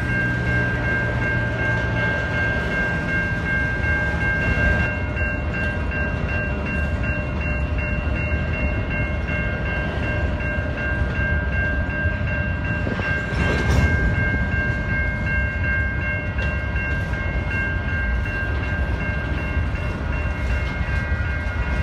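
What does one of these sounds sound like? A freight train rumbles past with clattering wheels on the rails.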